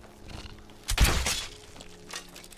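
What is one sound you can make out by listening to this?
A crossbow fires a bolt with a sharp snap.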